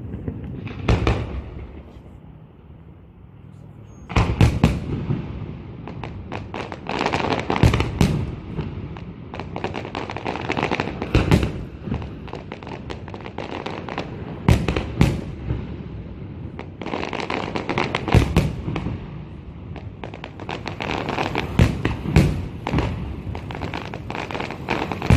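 Fireworks boom and bang loudly in the distance.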